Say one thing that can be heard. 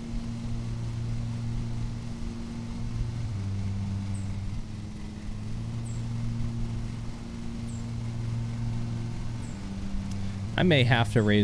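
A lawn mower engine hums steadily.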